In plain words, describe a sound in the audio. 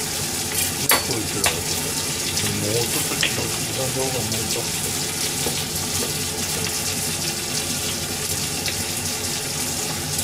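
A knife taps and scrapes on a cutting board.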